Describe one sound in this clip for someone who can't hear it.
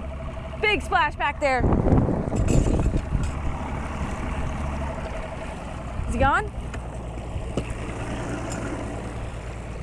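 Water splashes and churns against the side of a moving boat.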